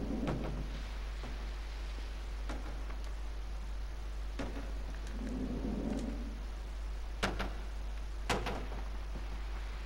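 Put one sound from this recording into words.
A wooden crate tumbles and thuds heavily onto the ground.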